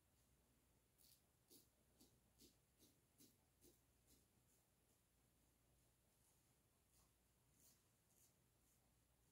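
A razor scrapes in short strokes across stubble.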